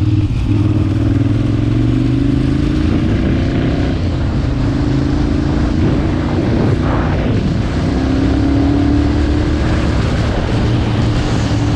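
A motorcycle engine hums steadily close by, rising and falling with the throttle.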